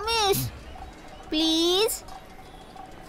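A young boy calls out in a high voice.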